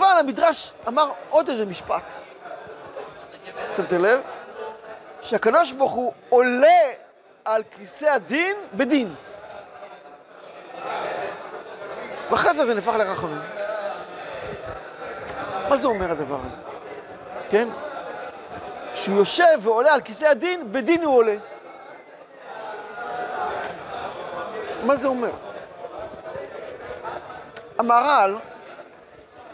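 An older man speaks with animation, close to a microphone.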